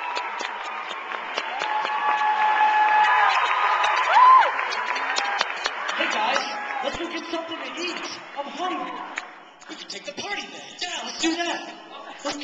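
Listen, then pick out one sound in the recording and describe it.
A group of young men sing together in harmony through microphones.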